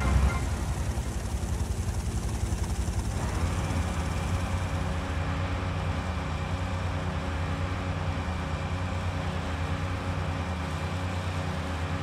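A speedboat engine drones steadily.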